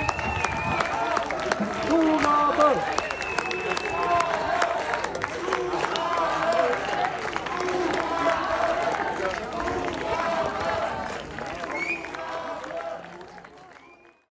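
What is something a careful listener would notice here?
An audience applauds loudly, then the applause fades away.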